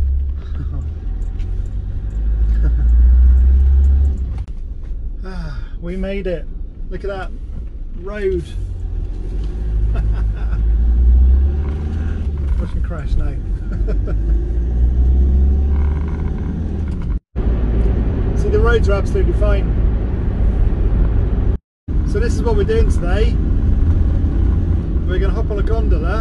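Tyres rumble on a road.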